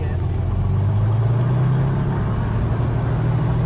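A propeller plane's engine revs up to a higher, steady pitch.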